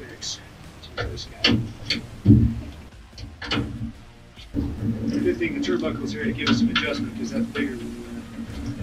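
Metal tools clank and knock against a car door.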